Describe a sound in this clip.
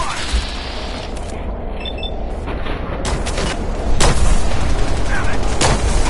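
A laser gun fires in quick bursts.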